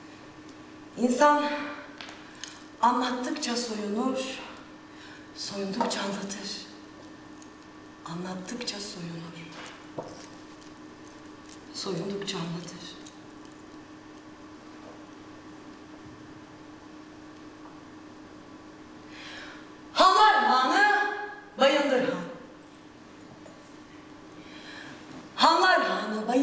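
A young woman speaks expressively, with a slight echo from a large room.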